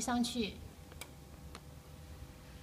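A wrench clicks against a bolt on a steel bracket.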